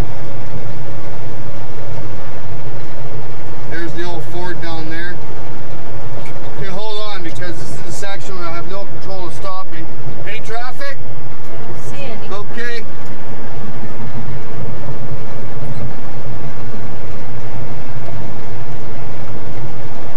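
Windshield wipers sweep across the glass.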